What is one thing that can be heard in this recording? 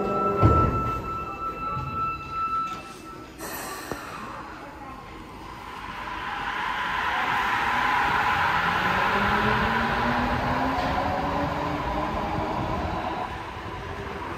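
A subway train rumbles and roars as it pulls away in an echoing tunnel, then fades.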